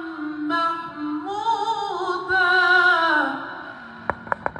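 A man chants in a drawn-out melodic voice through a microphone.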